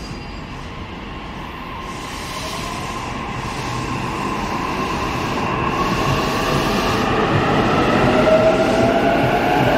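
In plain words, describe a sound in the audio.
Train wheels rumble and clatter along the track, growing louder.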